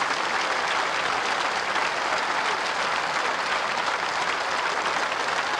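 A large crowd claps and cheers loudly in a big hall.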